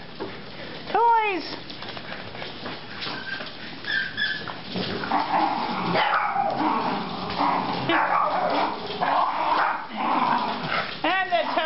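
Dog claws patter and scrape on a hard floor.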